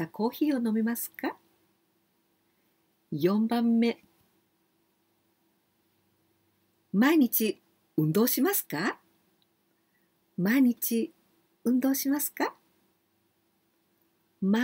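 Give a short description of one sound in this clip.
A middle-aged woman speaks cheerfully and with animation into a close microphone, in short bursts with pauses.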